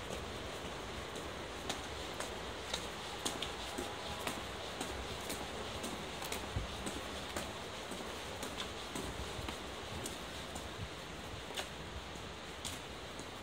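A stopped train hums steadily beside a platform.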